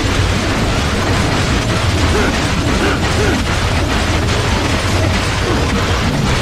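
Blades clang and slash rapidly against metal.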